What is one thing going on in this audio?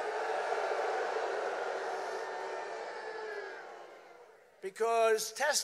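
A large crowd cheers and chants, then fades.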